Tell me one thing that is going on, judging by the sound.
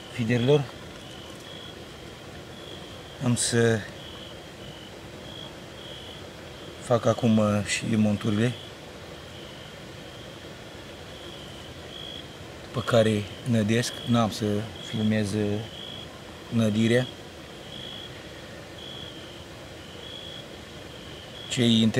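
A middle-aged man speaks close by in short, calm bursts with pauses.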